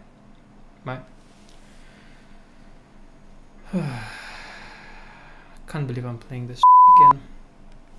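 A young man speaks calmly and close into a microphone.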